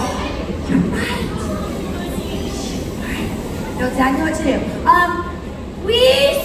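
A woman speaks with animation over a loudspeaker in a large, echoing open space.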